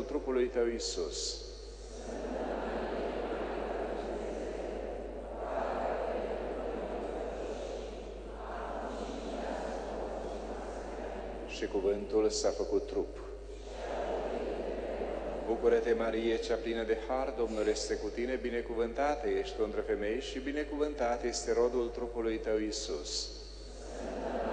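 A man speaks and chants through a microphone in a large echoing hall.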